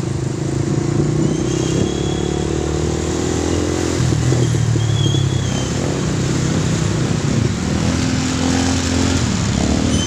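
Traffic rumbles along a busy street.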